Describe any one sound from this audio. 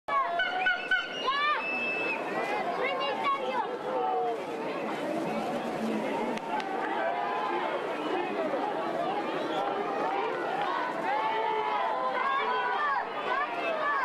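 A large crowd of spectators shouts and cheers loudly outdoors.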